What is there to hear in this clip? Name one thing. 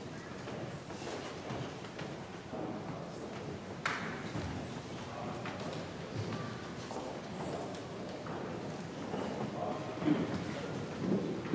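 Footsteps shuffle across a floor.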